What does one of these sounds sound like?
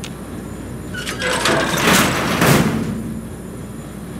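A heavy metal door grinds open with a loud rushing hiss.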